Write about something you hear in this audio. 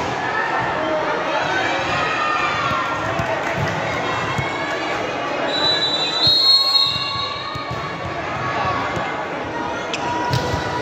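A crowd of spectators chatters and shouts in an echoing indoor hall.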